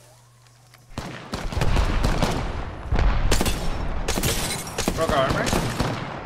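A rifle fires a rapid series of loud gunshots.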